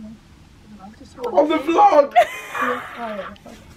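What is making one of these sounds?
A man laughs and shouts loudly close by.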